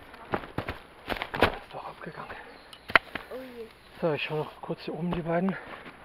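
Branches rustle and brush past as someone pushes through.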